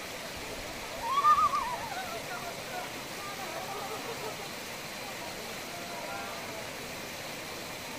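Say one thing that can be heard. Young men talk and call out nearby outdoors.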